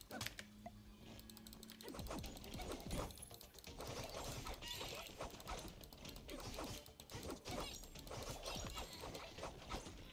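Game sound effects of blows and hits clatter in quick bursts.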